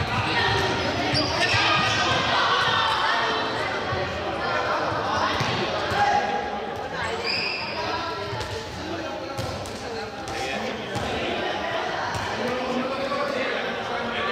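Sneakers squeak and thud on a hard floor.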